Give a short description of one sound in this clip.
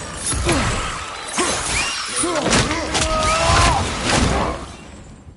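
Heavy metal blows clang as a shield strikes in a fight.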